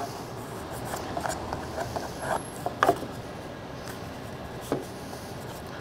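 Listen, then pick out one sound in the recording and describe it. Wooden pieces knock lightly against each other.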